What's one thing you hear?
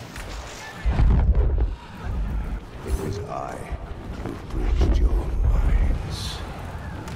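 Deep booming explosions thud.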